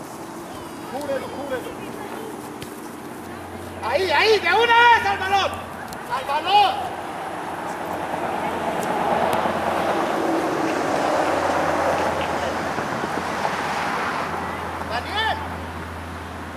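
Children shout and call out outdoors.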